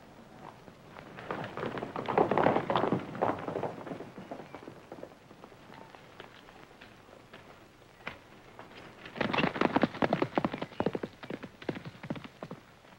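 A horse gallops past with pounding hooves.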